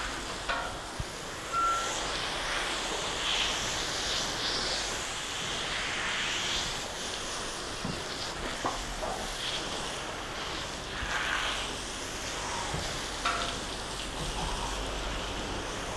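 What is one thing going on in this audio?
Water splashes and drips onto a wet floor.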